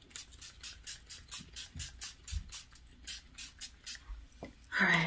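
A perfume bottle sprays in quick repeated puffs.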